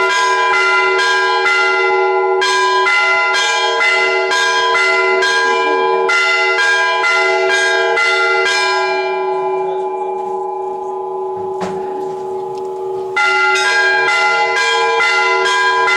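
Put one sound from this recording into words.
Church bells ring rapidly and repeatedly close by, pause briefly, then start again.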